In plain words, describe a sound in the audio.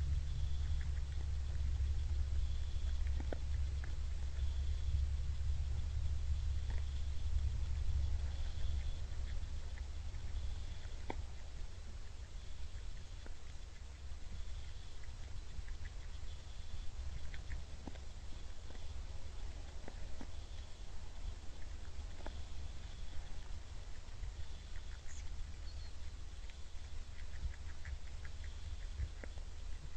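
A deer crunches and nibbles at food on the ground.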